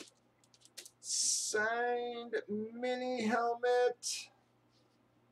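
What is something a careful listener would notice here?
Plastic wrapping crinkles as it is handled.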